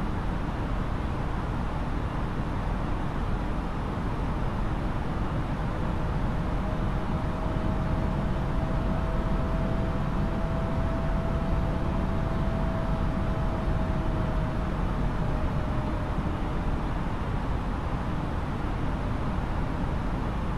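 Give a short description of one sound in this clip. Jet engines roar steadily with a constant rushing of air.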